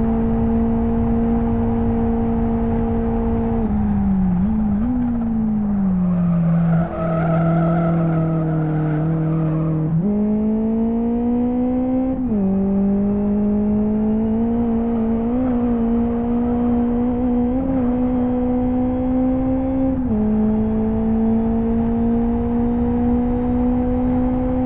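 A car engine drones steadily, dropping in pitch as the car brakes and rising again as it speeds up and shifts gears.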